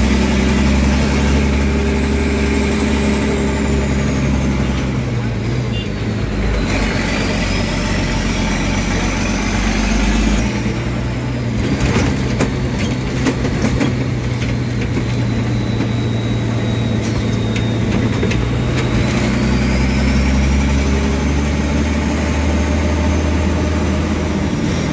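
A heavy engine rumbles loudly from inside the vehicle, changing pitch as it shifts gears.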